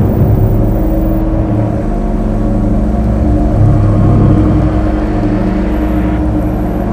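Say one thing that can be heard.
A huge machine rumbles and clanks deeply as its tracks roll forward.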